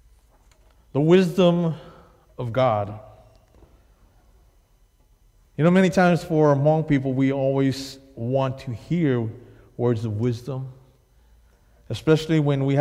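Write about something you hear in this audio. A man speaks to an audience through a microphone, pausing often, in a room with some echo.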